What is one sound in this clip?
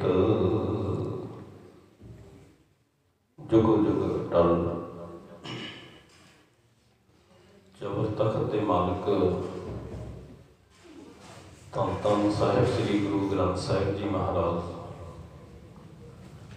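A man speaks steadily into a microphone, heard through a loudspeaker.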